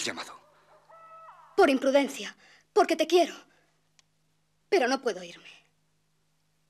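A young woman speaks softly and urgently, close by.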